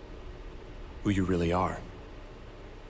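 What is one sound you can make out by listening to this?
A man answers in a low, smooth voice.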